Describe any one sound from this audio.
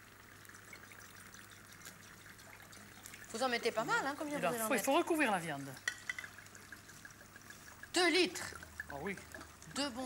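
Wine pours into a pan with a soft gurgle.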